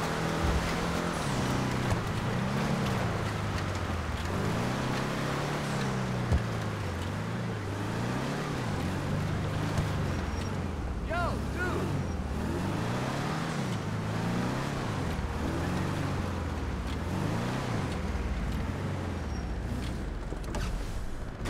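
A car engine revs up and down, rising and falling over and over.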